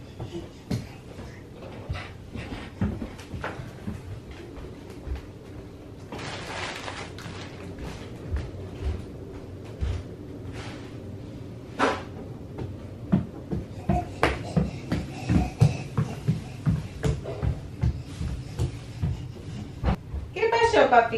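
A baby's hands pat and thump on a wooden floor while crawling.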